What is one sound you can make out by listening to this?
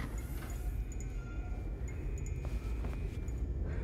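Metal sliding doors are pushed open with a soft rattle.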